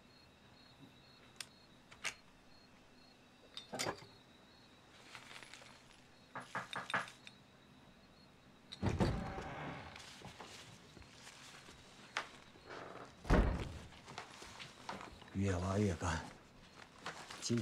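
Keys clack as a man types on a keyboard.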